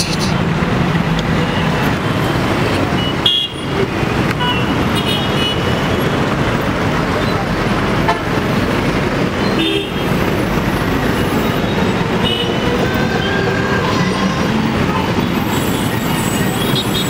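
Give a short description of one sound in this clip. Vehicle horns honk now and then.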